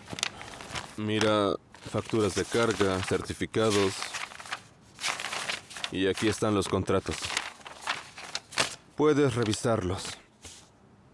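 A man speaks in a low, serious voice nearby.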